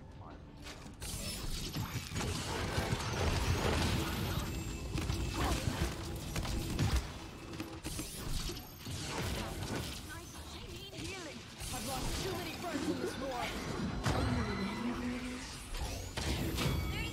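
An energy gun fires in rapid bursts.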